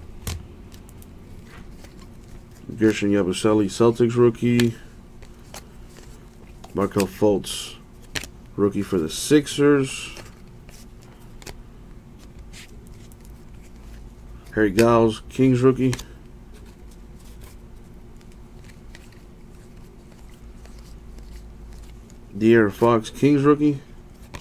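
Trading cards rustle and flick softly as hands shuffle through a stack.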